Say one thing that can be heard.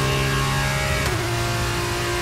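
A racing car engine shifts up a gear with a brief drop in pitch.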